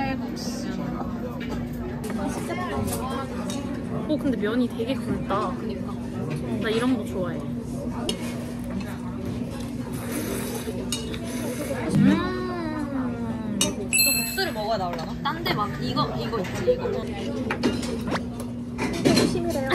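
Two young women chat and laugh close by.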